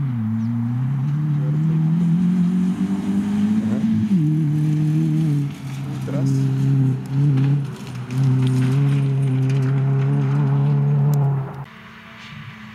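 A rally car accelerates hard past at full throttle, its engine rising through the gears.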